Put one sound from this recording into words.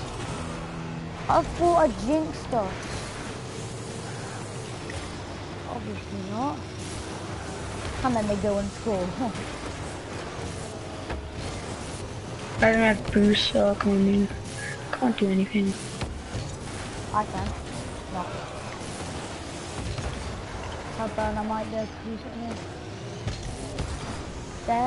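A car engine roars and hisses as it boosts.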